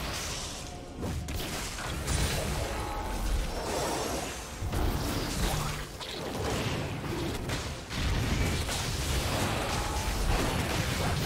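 Magic spells whoosh and crackle during a fantasy battle.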